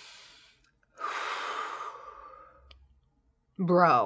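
A young woman blows out a long breath close by.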